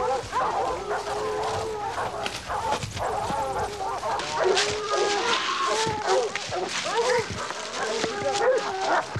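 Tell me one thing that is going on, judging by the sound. Hounds bay and howl close by.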